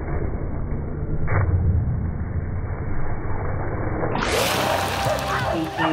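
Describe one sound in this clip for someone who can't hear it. A dog splashes heavily into a pool of water.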